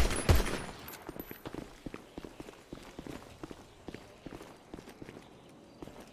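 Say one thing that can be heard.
Footsteps patter quickly on concrete.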